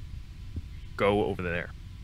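A second man answers in a low, firm voice.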